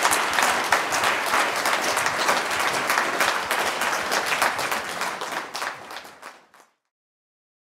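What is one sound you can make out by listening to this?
An audience applauds in a large room, then the clapping fades away.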